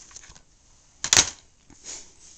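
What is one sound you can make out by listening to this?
A plastic case knocks and rattles against a wooden tabletop.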